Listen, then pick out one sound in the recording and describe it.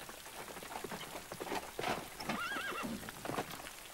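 A horse gallops up, hooves thudding.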